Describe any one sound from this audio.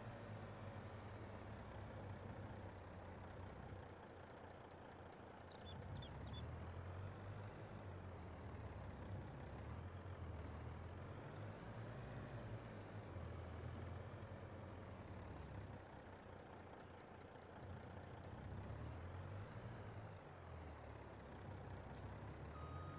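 A truck's diesel engine rumbles steadily, rising and falling as it drives.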